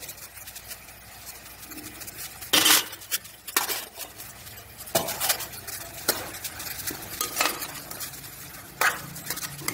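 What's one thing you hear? A metal ladle scrapes and stirs thick vegetables in a metal pot.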